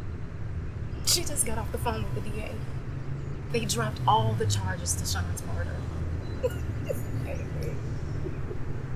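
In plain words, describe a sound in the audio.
A young woman talks softly to a man, close by.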